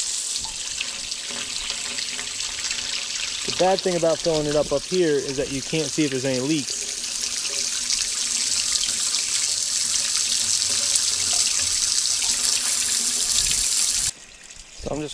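Water sprays from a hose nozzle with a steady hiss, then stops abruptly.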